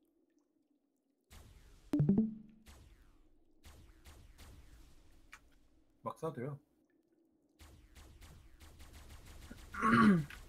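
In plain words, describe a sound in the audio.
A weapon fires a crackling energy blast.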